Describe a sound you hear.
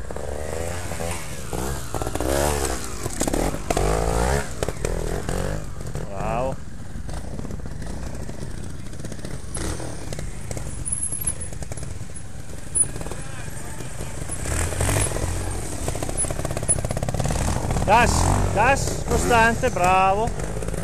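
A motorbike engine revs in sharp bursts close by.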